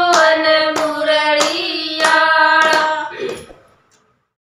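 Several women sing together in close harmony.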